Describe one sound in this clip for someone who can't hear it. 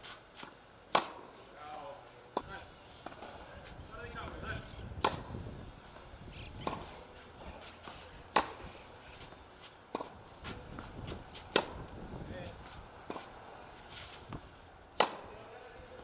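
A tennis ball is struck sharply with a racket again and again.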